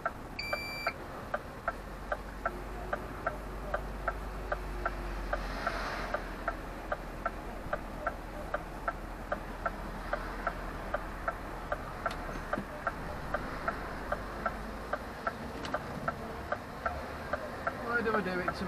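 A turn signal ticks at an even, quick pace.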